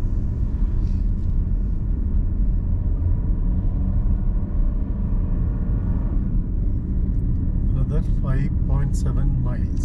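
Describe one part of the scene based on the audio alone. A car drives along a road with a steady low rumble.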